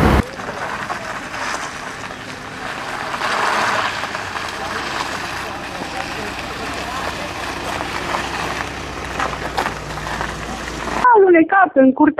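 An ambulance engine runs nearby as the ambulance drives slowly.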